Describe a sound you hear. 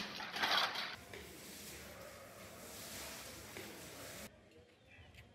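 Water from a hose splashes onto a stone floor.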